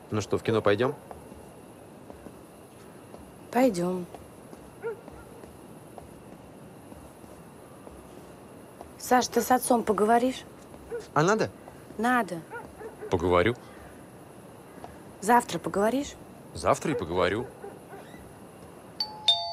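A young woman talks quietly outdoors.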